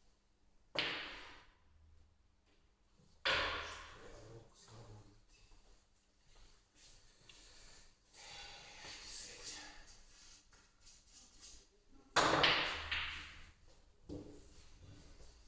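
Billiard balls knock against each other and roll on the table.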